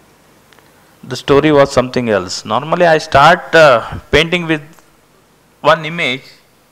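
A middle-aged man speaks calmly into a microphone in a large hall.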